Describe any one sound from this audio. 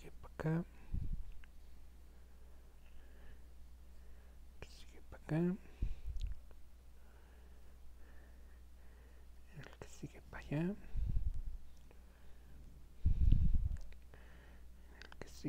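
Hands softly rustle and rub thick knitted yarn.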